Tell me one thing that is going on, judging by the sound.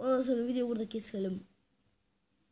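A young boy speaks with animation close to a microphone.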